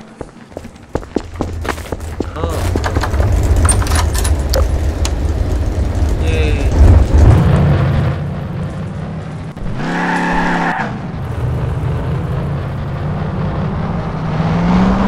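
A makeshift buggy's engine rumbles as it drives.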